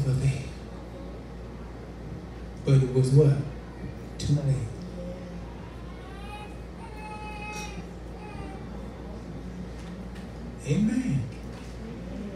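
An elderly man preaches with animation through a microphone and loudspeaker in an echoing room.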